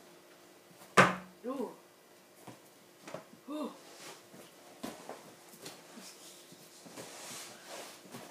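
An air mattress squeaks and creaks as a person climbs onto it.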